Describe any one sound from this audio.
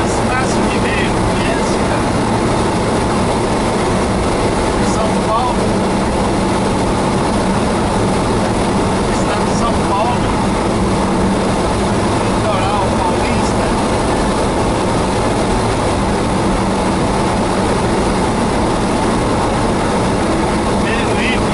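Tyres hiss on a wet road at highway speed, heard from inside the car.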